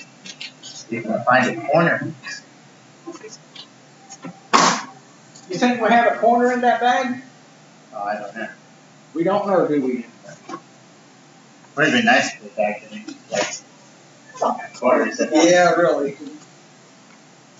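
A man talks casually nearby.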